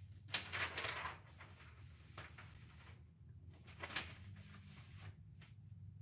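A large sheet of paper rustles as it is laid down and slid.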